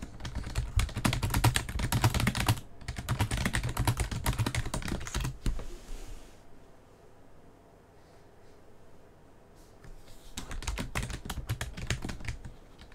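Quick clicking game sound effects patter in rapid bursts.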